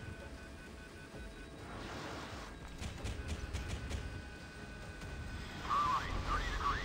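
Helicopter rotor blades thump steadily.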